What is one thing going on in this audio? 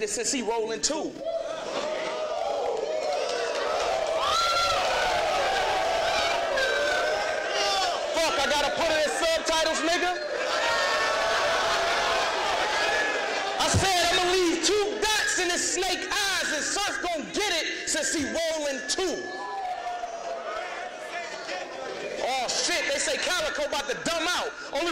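A young man raps loudly and forcefully in an echoing room.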